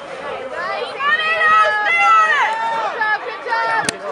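A woman shouts with excitement close by.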